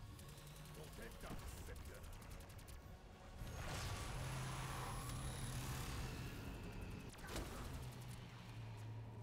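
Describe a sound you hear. An energy weapon fires with a loud humming buzz.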